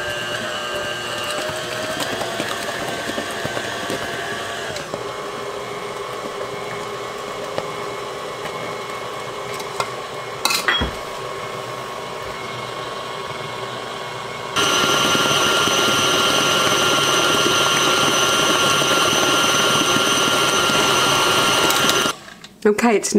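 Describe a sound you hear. An electric stand mixer whirs steadily, then speeds up and grows louder.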